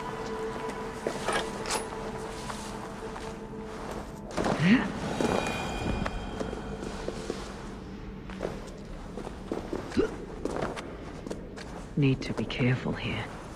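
Footsteps scrape and thud on rock.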